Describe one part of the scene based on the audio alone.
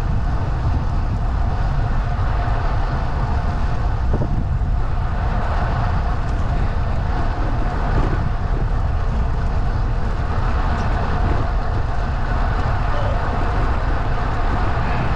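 Tyres roll steadily on smooth asphalt.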